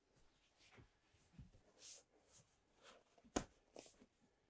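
Cushions thump softly as a man presses on a seat.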